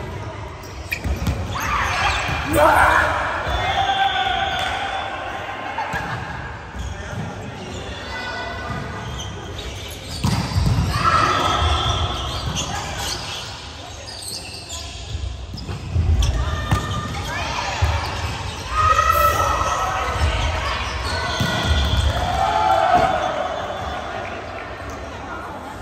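Young women shout and call out to each other across a large echoing gym.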